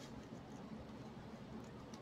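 Scissors snip through ribbon close by.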